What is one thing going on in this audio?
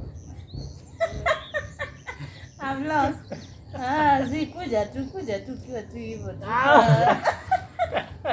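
Young men and women talk and laugh with animation close by.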